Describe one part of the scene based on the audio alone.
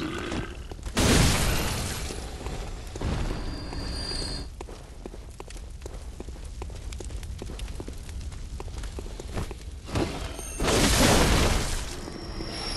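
A blade swishes and strikes.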